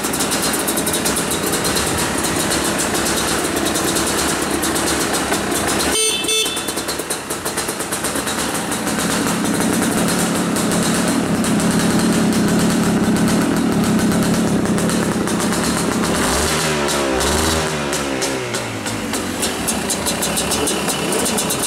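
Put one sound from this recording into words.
A motorcycle engine idles steadily close by.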